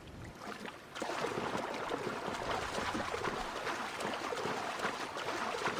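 Water splashes and laps steadily as a swimmer swims at the surface.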